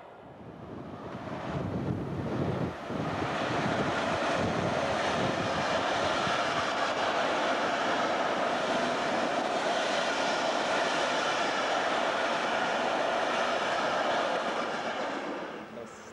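A train approaches and rumbles steadily past on the rails.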